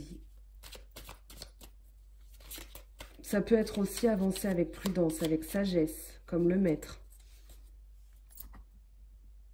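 Cards are shuffled in the hands with soft flicking and slapping.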